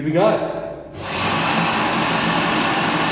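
A hand dryer blows with a loud, steady roar.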